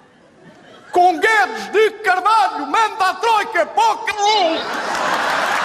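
A man sings loudly in a wobbling voice.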